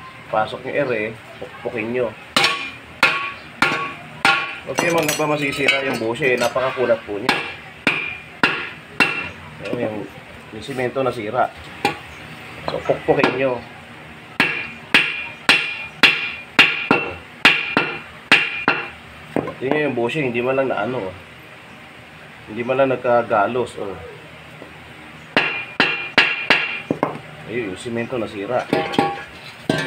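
A hammer strikes metal in sharp, ringing blows.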